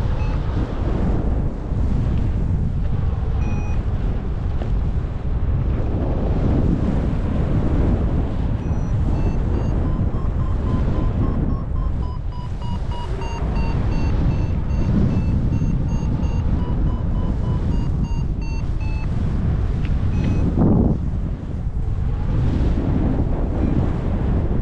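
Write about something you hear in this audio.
Wind roars loudly across the microphone in open air.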